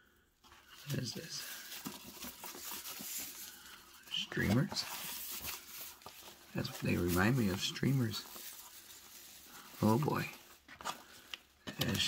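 Ribbons rustle and swish as they are pulled about.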